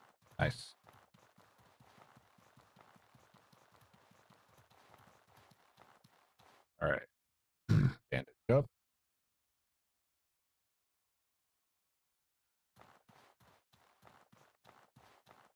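Footsteps crunch quickly on sand.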